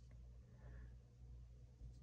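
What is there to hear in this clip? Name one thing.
Dice click on a tabletop.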